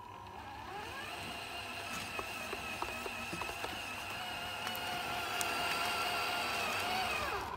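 Small wheels crunch over gravel and wood chips.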